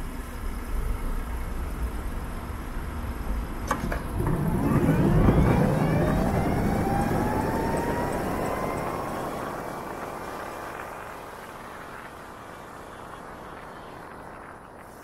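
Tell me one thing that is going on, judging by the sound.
Wind rushes past a moving motorcycle.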